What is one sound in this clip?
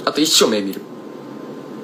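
A young man speaks briefly, close to a phone microphone.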